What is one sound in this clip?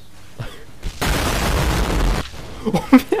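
An explosion booms with a loud rushing roar.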